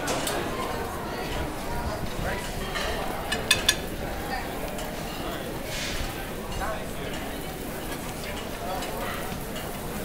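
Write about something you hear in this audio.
A crowd of people talks in a low murmur all around.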